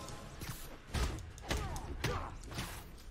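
Punches land with heavy thuds in a fight.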